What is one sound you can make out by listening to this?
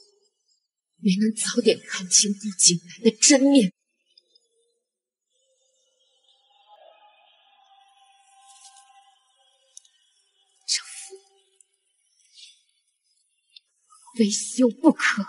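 A young woman speaks firmly and close by.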